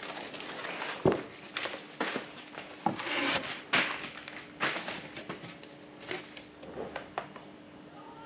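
A heavy rubber mat thumps against the floor.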